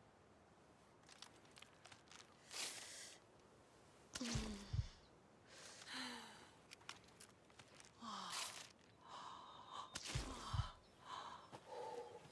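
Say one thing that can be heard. Footsteps rustle through dry brush and undergrowth.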